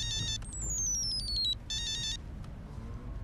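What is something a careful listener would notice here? A mobile phone rings with a bright electronic melody.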